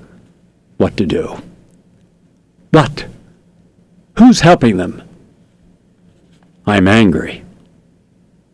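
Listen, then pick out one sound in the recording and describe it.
A middle-aged man speaks in short bursts close to a microphone.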